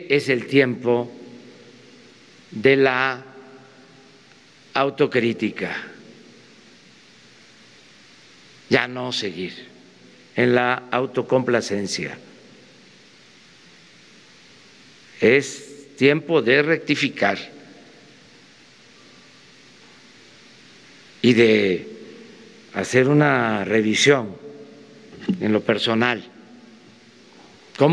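An elderly man speaks calmly and slowly into a microphone, with long pauses, in a large echoing hall.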